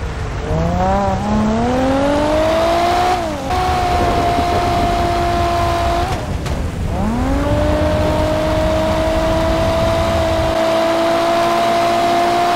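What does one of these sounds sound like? A car engine revs hard, climbing in pitch and dropping with each gear change.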